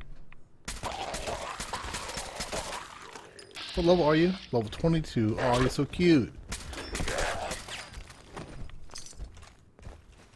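A rifle fires rapid, sharp shots.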